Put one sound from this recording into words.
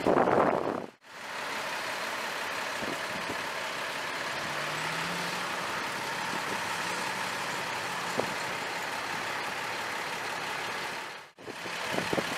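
A fire truck engine idles steadily nearby.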